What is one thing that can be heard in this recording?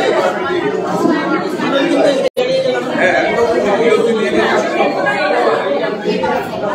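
Several men talk at once close by in a busy, echoing room.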